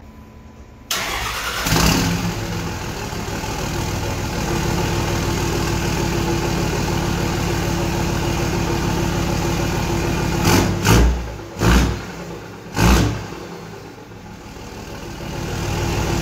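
A truck engine idles with a deep rumble through the exhaust.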